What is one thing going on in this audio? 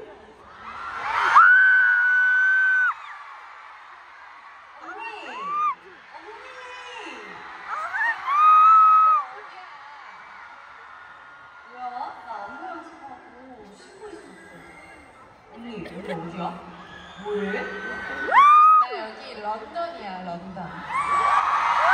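A large crowd screams and cheers loudly in an echoing hall.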